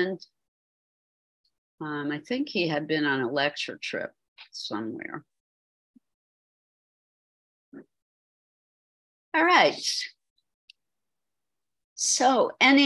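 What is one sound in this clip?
An elderly woman speaks calmly through an online call, in short phrases with pauses.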